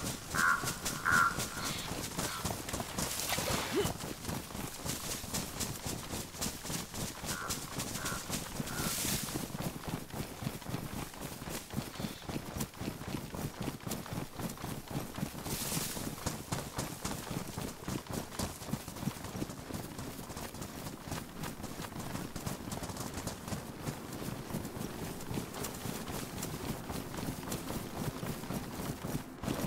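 Footsteps run quickly through grass and brush.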